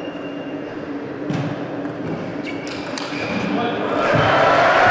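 A ping-pong ball clicks back and forth on the table and paddles.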